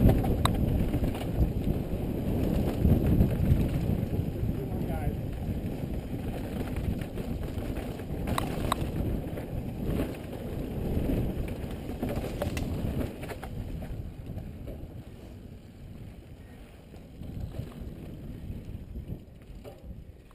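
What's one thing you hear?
Wind rushes past a helmet as a mountain bike rides downhill.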